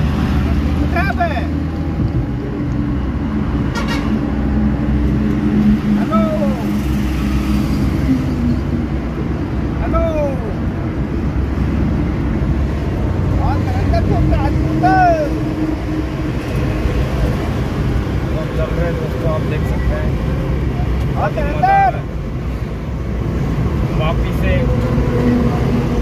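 A petrol minivan's engine drones from inside the cab as it cruises on a highway.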